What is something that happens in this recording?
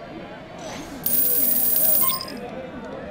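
Coins tally up with a rapid, bright chiming.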